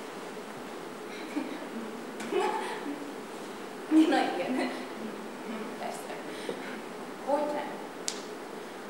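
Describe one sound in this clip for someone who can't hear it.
A woman reads out quietly.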